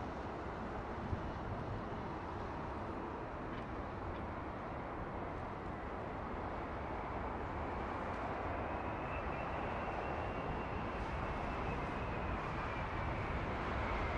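A large jet airliner roars loudly as it descends low overhead, its engine noise growing louder and whining as it nears.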